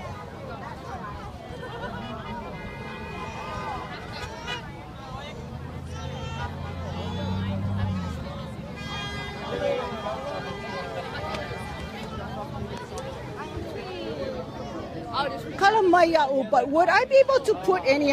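A crowd of people chatter and shout outdoors.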